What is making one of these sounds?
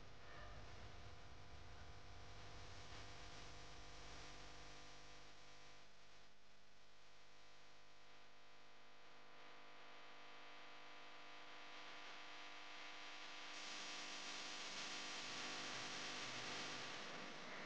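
Fabric rustles softly as a cover is unfolded and spread out.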